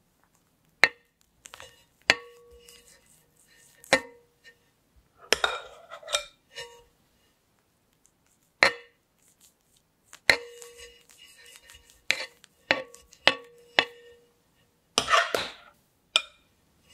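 A metal spatula taps against a turntable with a short ringing clink.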